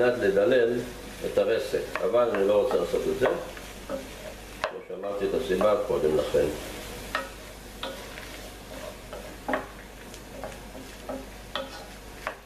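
A wooden spoon scrapes and knocks against a pan.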